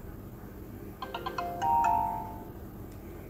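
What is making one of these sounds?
A short cheerful game jingle plays.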